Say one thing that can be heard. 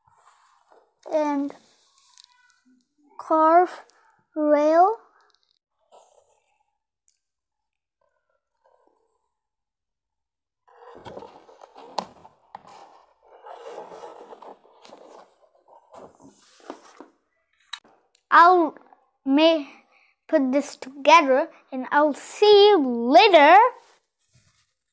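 A young boy speaks close to a microphone in a lively, sing-song voice.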